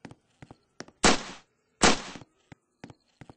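Two loud pistol shots ring out in quick succession.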